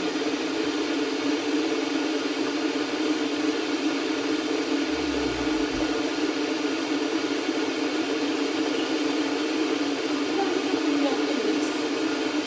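A young woman gulps water from a plastic bottle.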